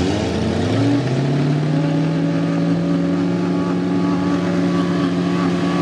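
Mud sprays and splashes against a truck.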